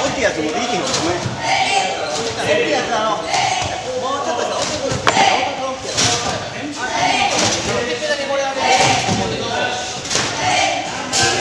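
Young people chatter and call out in a large echoing hall.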